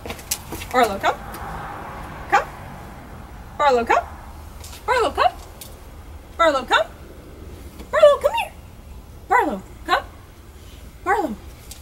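A woman calls out repeatedly in a high, sing-song voice close by.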